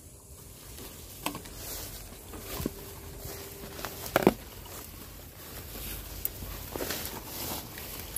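Leaves and grass rustle as someone pushes through dense undergrowth.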